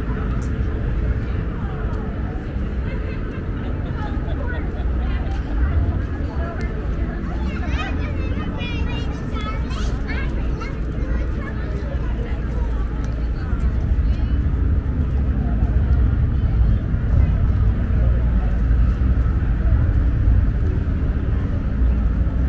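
A crowd of adults and children chatter at a distance.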